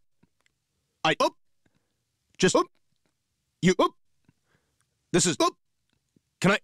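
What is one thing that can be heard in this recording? A man's voice speaks in short, clipped bursts with pauses between them.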